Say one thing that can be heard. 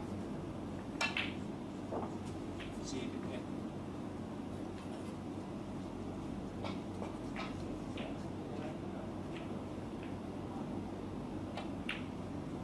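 A snooker cue strikes a ball with a sharp click.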